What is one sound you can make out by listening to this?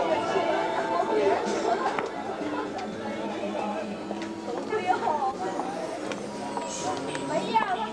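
Footsteps scuff on stone paving.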